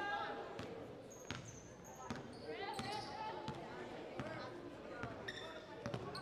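Basketballs bounce on a hard court, echoing in a large gym.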